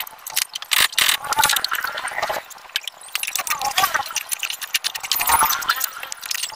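Metal tools clink and clatter against car parts nearby.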